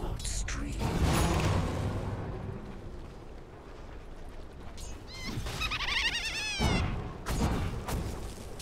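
Fighting game sound effects clash and burst with low rumbles.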